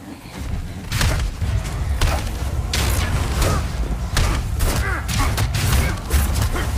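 Heavy blows thud and smack in a close struggle.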